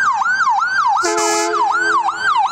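A vehicle horn blasts briefly.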